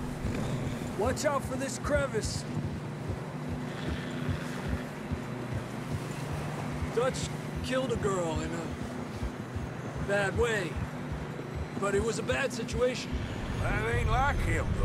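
Men talk calmly nearby, one after another.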